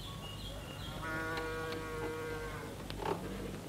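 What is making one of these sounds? A wooden well winch creaks as a rope is hauled up.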